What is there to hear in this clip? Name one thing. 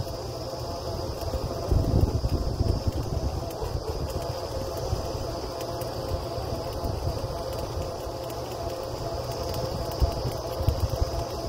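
A drilling rig engine runs with a steady, loud low rumble.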